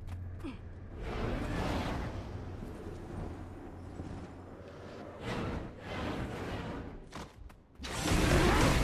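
Wind rushes past during a long glide.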